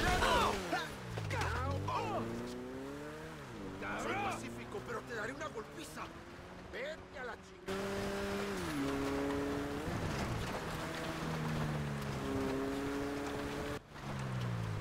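A car engine revs and shifts gears, rising and falling in pitch.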